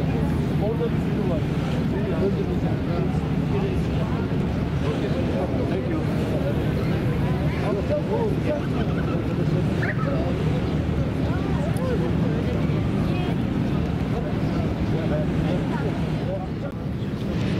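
Water splashes and churns against a boat's hull.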